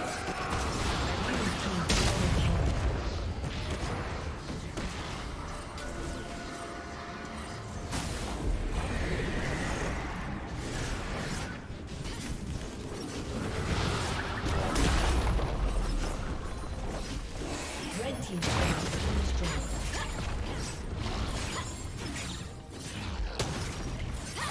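Game spell effects whoosh and clash in a busy fight.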